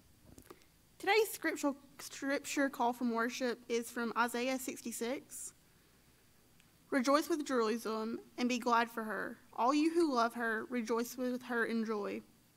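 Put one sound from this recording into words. A young woman reads aloud through a microphone in a large echoing hall.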